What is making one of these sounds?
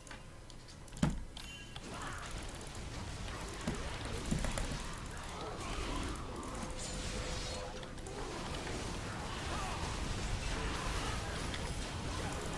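Game spell effects whoosh and crack in bursts.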